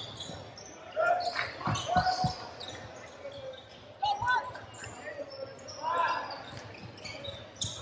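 Young men call out to each other during play.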